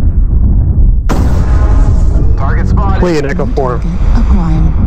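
A laser weapon fires with a sharp buzzing burst.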